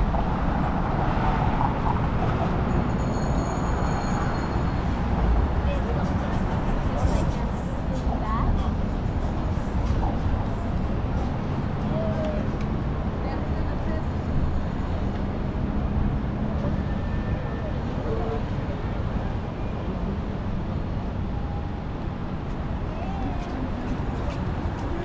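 City traffic hums and rumbles steadily nearby.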